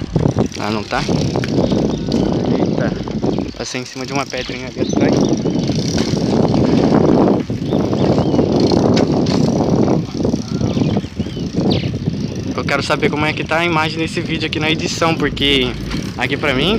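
Bicycle tyres roll on asphalt.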